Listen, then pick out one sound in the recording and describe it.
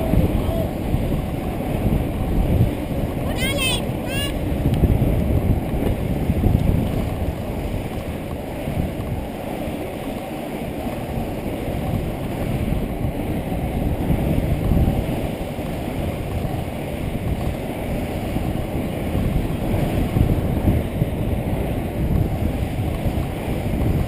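Inline skate wheels roll fast on asphalt.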